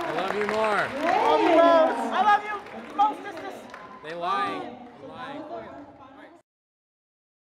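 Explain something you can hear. A crowd of young people cheers and shouts in a large echoing gym.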